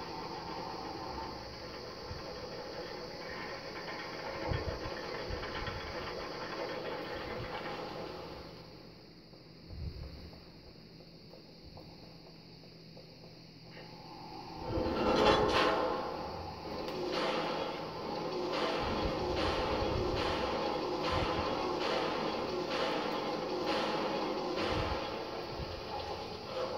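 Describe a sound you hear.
A video game's music and effects play through a television's speakers.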